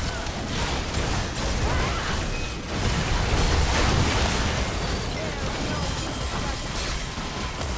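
Game spell effects crackle and blast during a battle.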